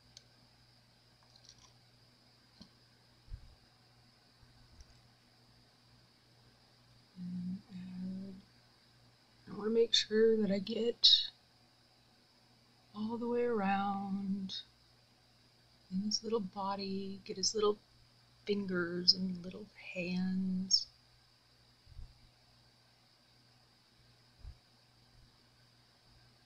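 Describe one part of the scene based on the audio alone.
Soft gauze rustles and crinkles between fingers.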